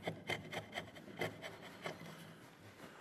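A chisel shaves and scrapes wood in short strokes.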